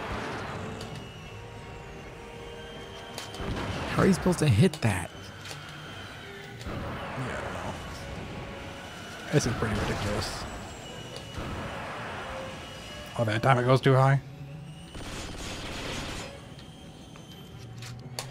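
A helicopter hovers with a whirring drone.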